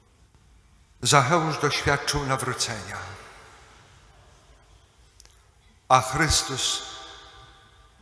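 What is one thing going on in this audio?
A middle-aged man speaks calmly into a microphone in an echoing room, with pauses.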